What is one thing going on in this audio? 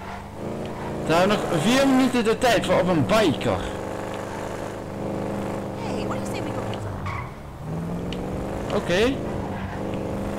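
Tyres screech on the road through the turns.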